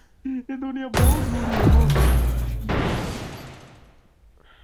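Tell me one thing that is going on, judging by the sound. A loud, short game fanfare plays.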